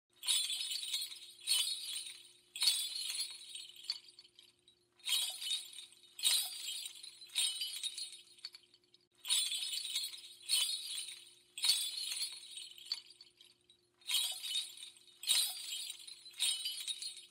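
Church bells ring out in loud, repeating peals.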